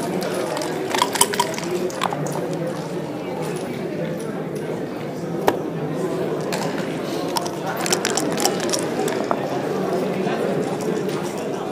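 Dice rattle and clatter onto a board.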